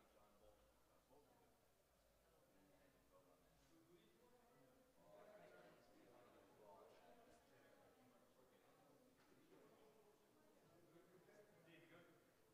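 Several men and women chatter at once in a large echoing hall.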